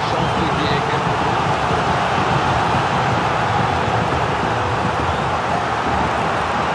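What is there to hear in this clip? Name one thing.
A large stadium crowd cheers and chants loudly and steadily.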